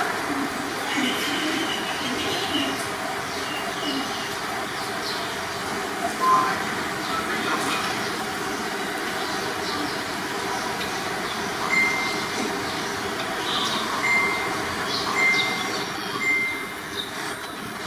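Kittens lap and chew food from a dish.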